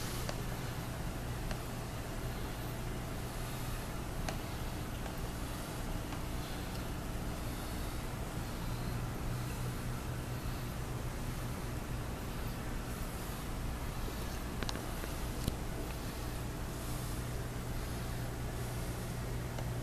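An aquarium filter hums steadily.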